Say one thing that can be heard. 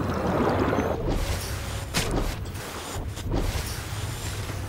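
Water splashes loudly as something breaks the surface.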